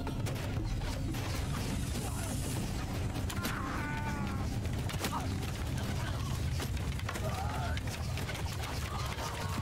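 A crowd of men shouts battle cries.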